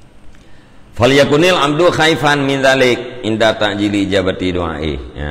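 A man reads aloud in a steady chanting voice, close to a microphone.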